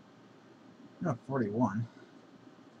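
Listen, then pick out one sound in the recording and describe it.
A young man speaks briefly into a microphone.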